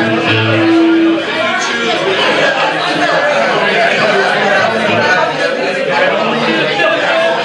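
Electric guitars play distorted chords.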